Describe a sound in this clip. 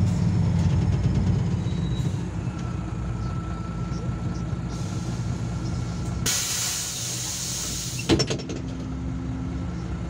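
A bus engine rumbles low as the bus slows to a stop and idles.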